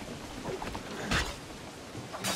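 A sword strikes with a sharp, heavy clash.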